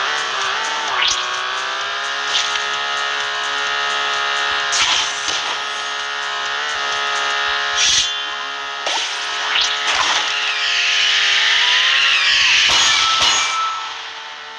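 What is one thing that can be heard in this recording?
Short game effects chime and whoosh now and then.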